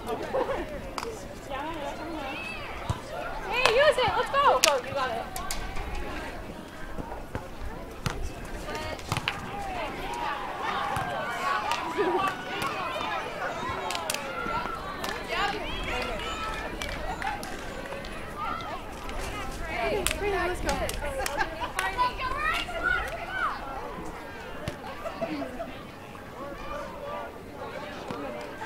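Young women talk and call out to each other outdoors.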